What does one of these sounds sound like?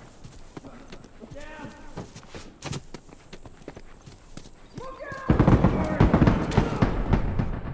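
Footsteps patter quickly over hard ground.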